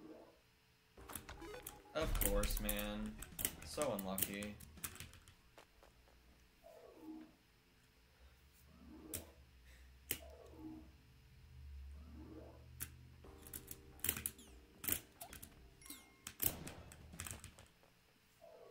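Short video game sound effects pop and chime.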